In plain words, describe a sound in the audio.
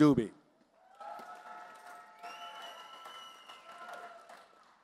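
People applaud.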